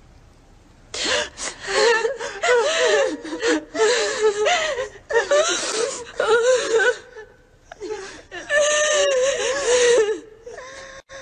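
A woman wails and sobs loudly in grief.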